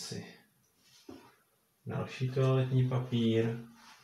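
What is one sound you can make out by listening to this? A plastic bottle clatters as it is set down on a table.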